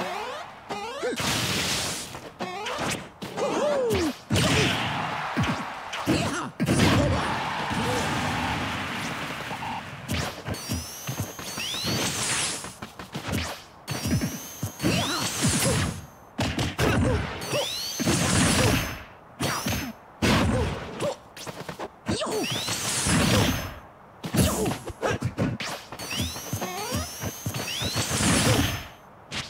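Video game punches and kicks land with sharp smacks and whooshes.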